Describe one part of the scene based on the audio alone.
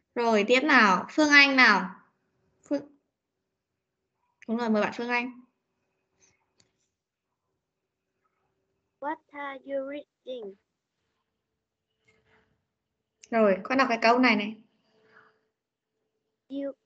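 A woman speaks clearly through an online call, in short phrases with pauses.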